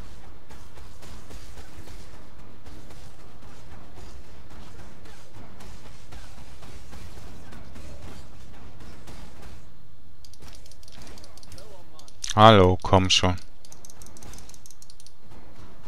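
Magic spells crackle and burst during a fight with monsters.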